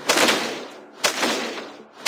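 A lightning bolt cracks down.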